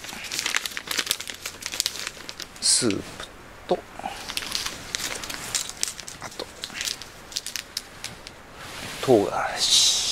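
Plastic food packets crinkle and rustle in someone's hands.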